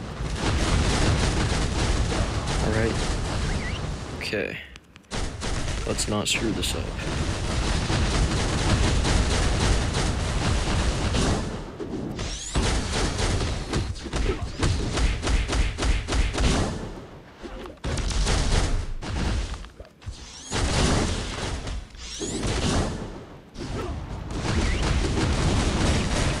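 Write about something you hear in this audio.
Punches and weapon strikes thud and clang rapidly.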